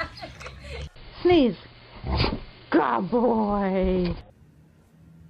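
A dog howls loudly and close by.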